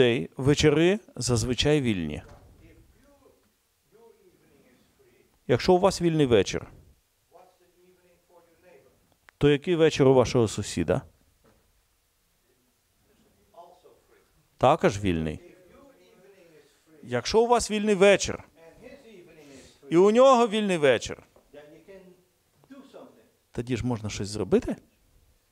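An elderly man speaks with animation in bursts, in a room with a slight echo.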